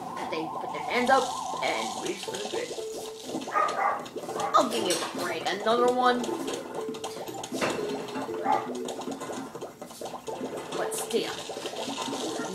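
Game sound effects pop and thump from a television speaker.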